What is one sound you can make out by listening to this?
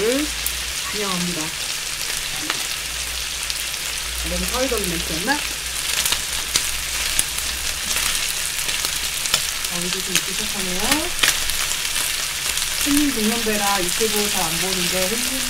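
Meat sizzles steadily on a hot grill.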